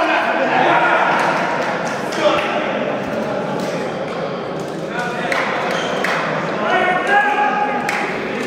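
A volleyball smacks against hands.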